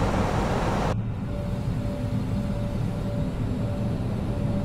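The jet engines of an Airbus A320 airliner in flight drone outside the cabin.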